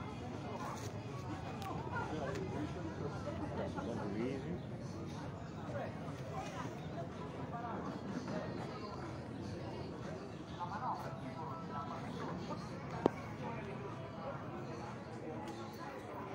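A crowd of adults chatters nearby outdoors.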